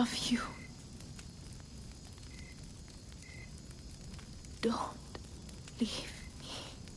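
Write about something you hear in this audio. A young woman speaks weakly and breathlessly, close by.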